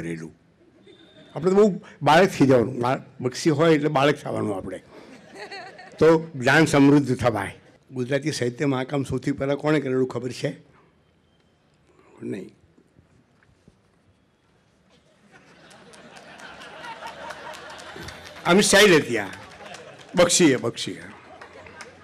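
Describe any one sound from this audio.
An elderly man speaks slowly and with feeling into a microphone.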